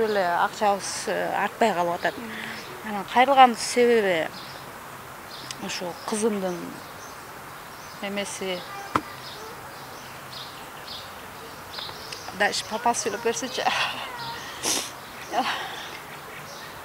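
A young woman speaks emotionally into a microphone, close by.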